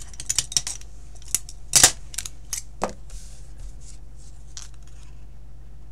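Paper rustles as it is picked up.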